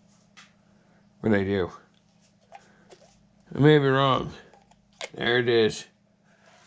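Water sloshes and drips as a pan is dipped and lifted in a tub.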